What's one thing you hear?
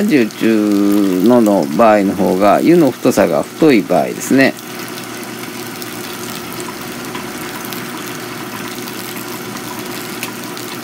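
Hot water trickles steadily from a kettle onto coffee grounds.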